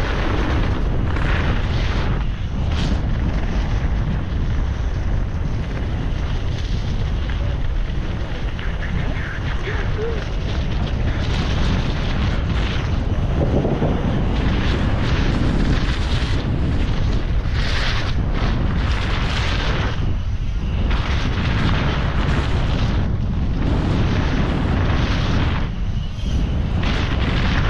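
Wind rushes loudly past a microphone outdoors.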